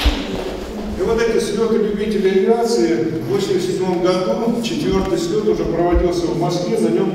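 A middle-aged man reads out into a microphone.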